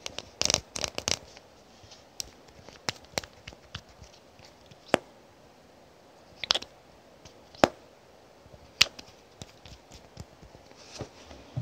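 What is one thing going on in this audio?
Fingers tap and click on a plastic cap, close up.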